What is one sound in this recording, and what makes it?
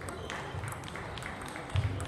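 A ball clicks back and forth on a table tennis table and paddles.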